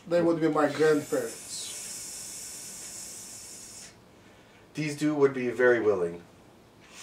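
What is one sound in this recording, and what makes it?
A middle-aged man speaks calmly nearby.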